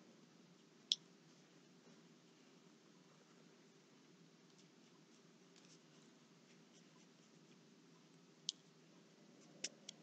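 A marker pen squeaks faintly as it draws on paper.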